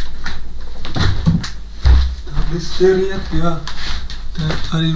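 Footsteps thud on the floor.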